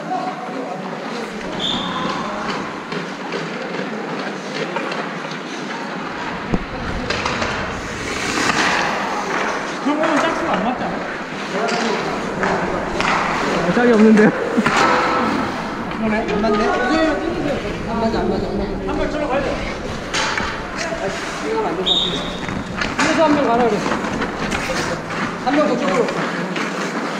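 Ice skates scrape and hiss across the ice nearby.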